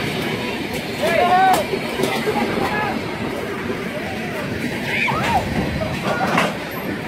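A crowd of men shouts excitedly outdoors.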